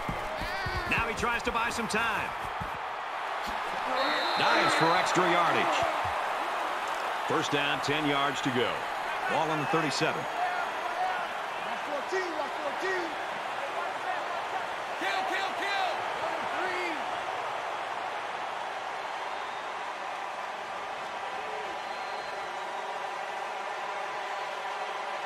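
A stadium crowd cheers and murmurs steadily.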